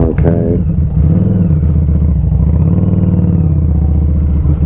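A motorcycle engine briefly revs up and settles.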